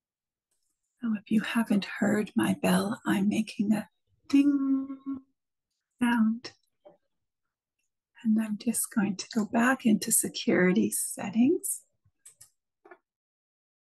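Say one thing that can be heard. A middle-aged woman speaks warmly over an online call.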